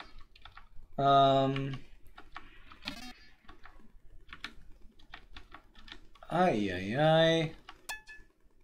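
Short electronic game tones beep and chirp.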